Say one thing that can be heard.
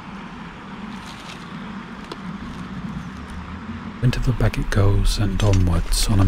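Dry stalks and leaves rustle and crackle close by.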